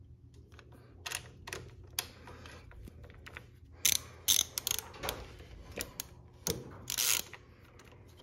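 A metal tool clinks against an engine.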